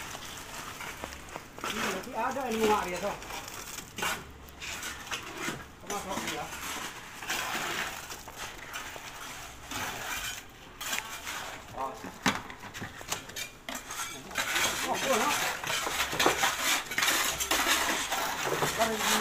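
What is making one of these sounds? A wheelbarrow's metal tub knocks and rattles.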